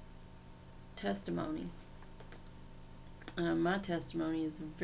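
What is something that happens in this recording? A middle-aged woman speaks calmly and close to the microphone, in short bursts with pauses.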